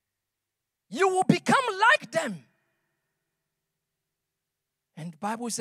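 A man speaks with animation into a microphone, amplified in a large hall.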